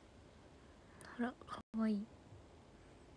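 A young woman speaks softly and briefly, close to a phone microphone.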